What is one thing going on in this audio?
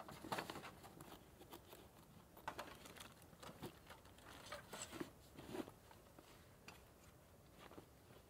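A zip rasps and fabric rustles as a bag is opened.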